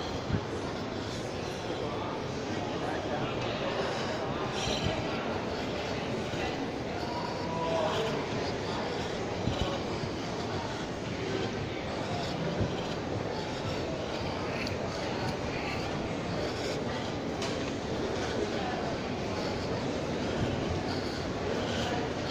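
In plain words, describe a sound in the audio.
A steady murmur of distant voices echoes through a large indoor hall.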